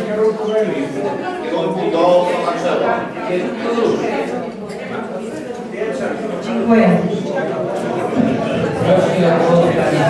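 A woman speaks into a microphone through a loudspeaker.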